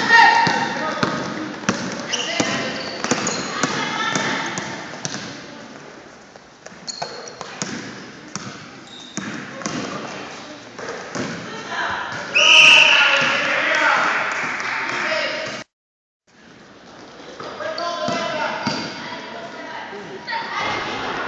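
Sneakers squeak sharply on the floor.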